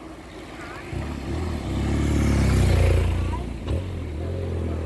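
A motorcycle engine rumbles close by and passes.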